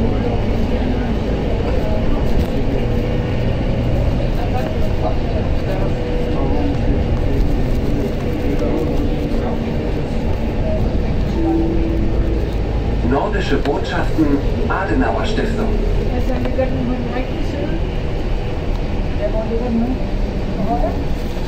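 A vehicle rumbles steadily as it drives along a road.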